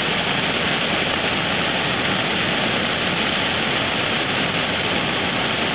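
Water rushes loudly over a weir in a steady roar.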